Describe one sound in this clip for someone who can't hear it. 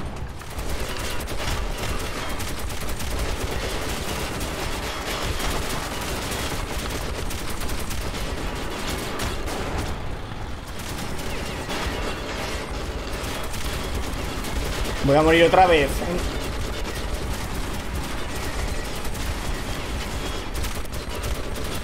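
Gunfire rattles in rapid bursts with loud impacts.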